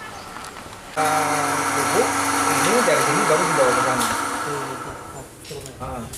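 A grinding machine whirs loudly.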